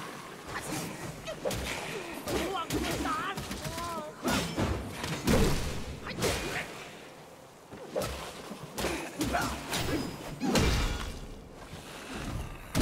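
Swords clash and strike in quick bursts.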